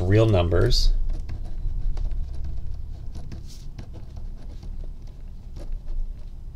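A pen scratches across paper close by.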